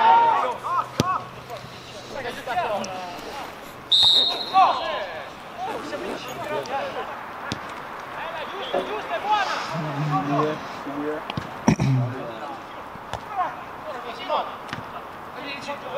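A football is kicked with a sharp thud.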